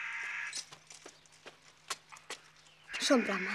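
Horse hooves clop on stone.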